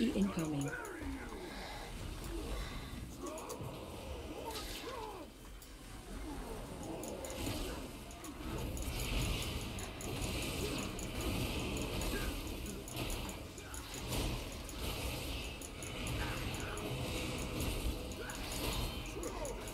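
Magic spells crackle and boom during a fight.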